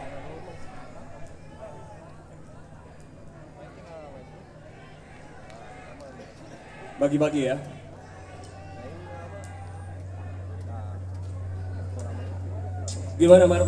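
A crowd of young people chatters close by.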